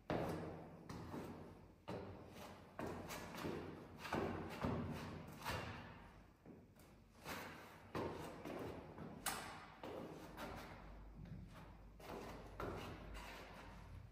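Sneakers scuff and tap on a hard floor.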